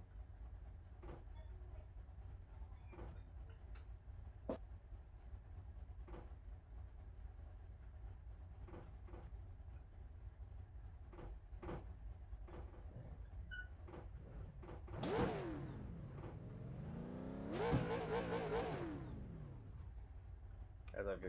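A race car engine idles with a low, steady rumble.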